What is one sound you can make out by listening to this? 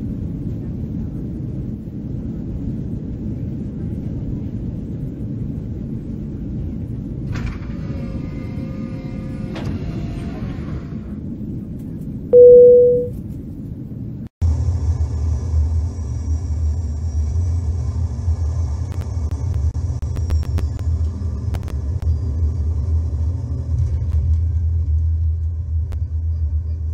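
A jet engine rumbles steadily, louder and deeper after a sudden change midway.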